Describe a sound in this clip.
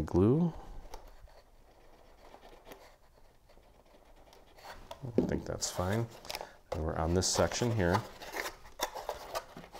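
Stiff paper rustles and crinkles.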